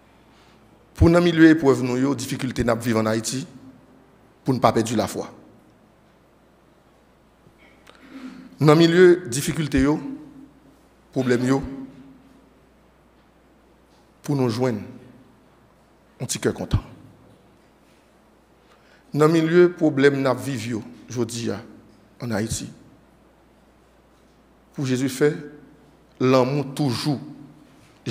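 A man speaks slowly and deliberately into a microphone, in short phrases with pauses.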